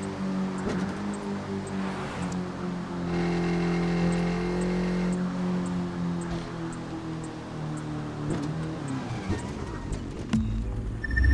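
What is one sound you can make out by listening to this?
A motorcycle engine roars at high speed and then winds down.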